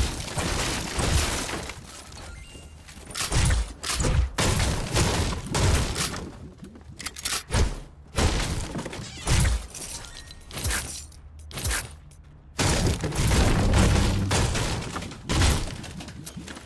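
A pickaxe strikes wooden walls with sharp, repeated thwacks.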